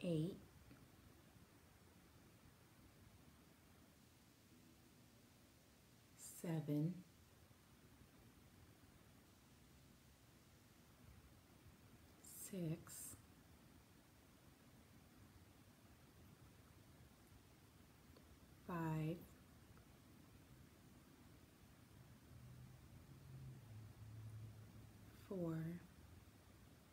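A woman speaks softly and calmly, close by, in short phrases with long pauses.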